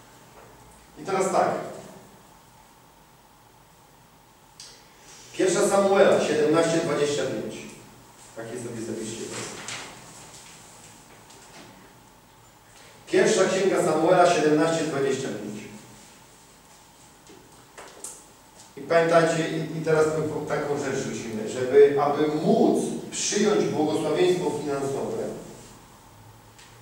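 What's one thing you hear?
A man reads aloud slowly from a book in a small echoing room.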